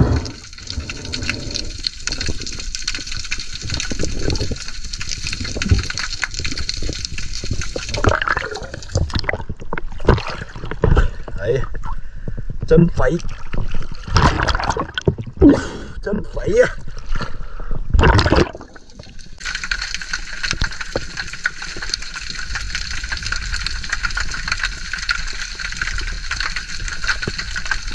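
Muffled underwater rumbling and hissing fill the sound.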